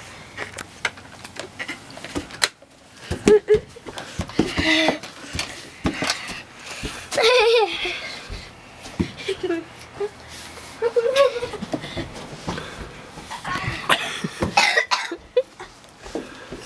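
A pet door flap bangs and clatters.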